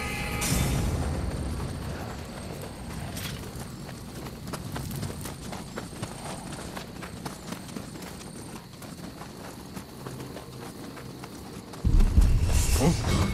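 Footsteps patter quickly over wood and gravel.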